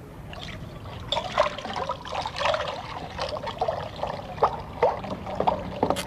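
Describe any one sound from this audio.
Water trickles from a tap.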